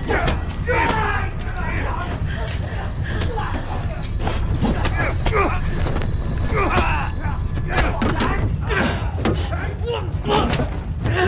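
Blows and thuds land in a scuffle.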